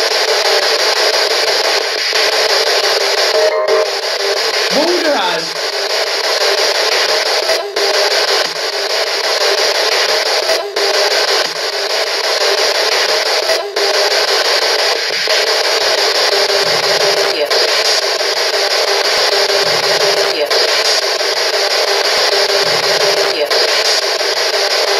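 A radio scanner hisses with loud, steady static.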